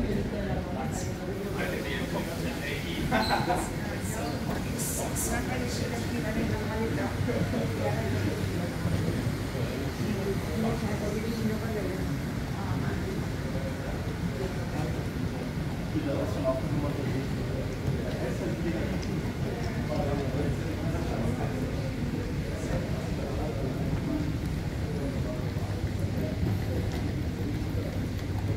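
Indistinct voices murmur throughout a large echoing hall.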